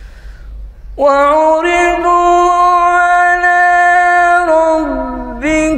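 A man chants a long, drawn-out call in a loud, sustained voice through a microphone.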